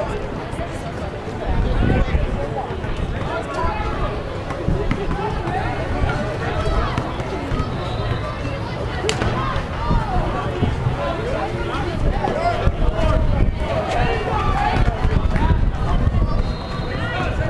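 A crowd of people chatters at a distance outdoors.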